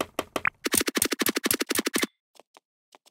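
A sword swings and hits rapidly, again and again.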